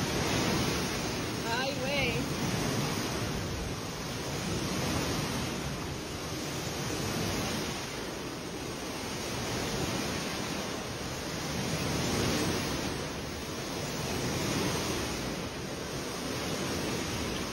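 Water sloshes and splashes in a pool.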